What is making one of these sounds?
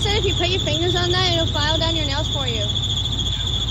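A young woman talks in a high, sing-song voice close by.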